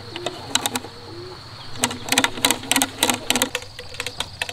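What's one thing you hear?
Knocks and taps sound on hollow bamboo poles.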